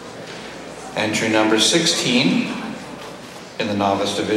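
A man speaks loudly through a microphone in a large hall.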